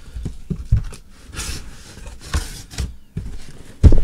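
Cardboard flaps rustle as a box is opened.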